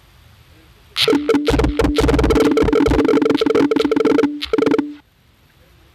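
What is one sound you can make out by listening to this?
Small balls clatter and rattle as they pour into a cup.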